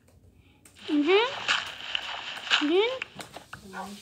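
Dirt crunches as it is dug out.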